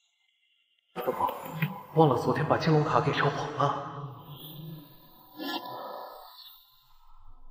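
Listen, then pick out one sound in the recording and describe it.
A young man speaks quietly and thoughtfully, close by.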